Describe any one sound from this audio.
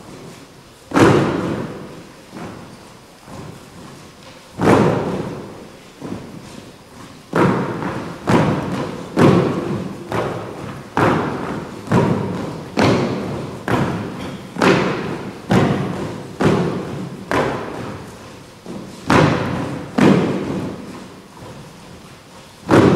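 Dancers stamp their feet in unison, the thuds echoing through a large hall.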